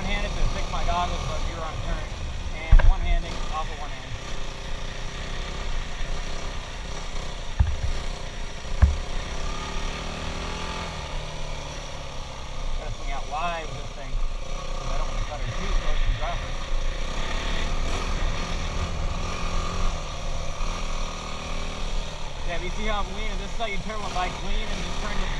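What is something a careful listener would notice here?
A dirt bike engine revs and drones up close, its pitch rising and falling.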